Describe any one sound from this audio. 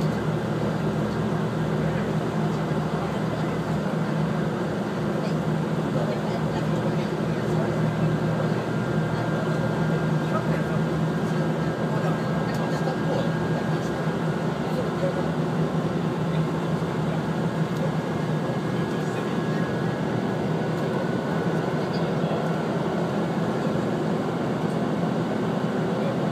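Wheels rattle and clatter on the rails.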